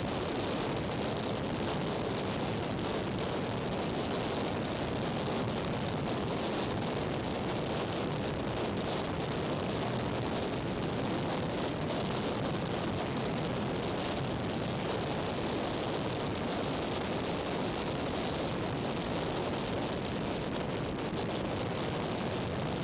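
Wind blows steadily over open water, rumbling against the microphone.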